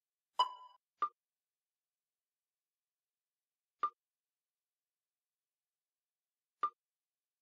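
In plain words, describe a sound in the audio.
Short electronic clicks sound as puzzle blocks snap into place.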